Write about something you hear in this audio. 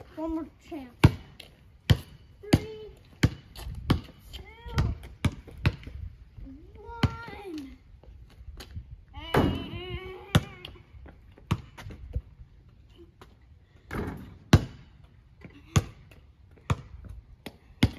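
A basketball bounces repeatedly on hard pavement outdoors.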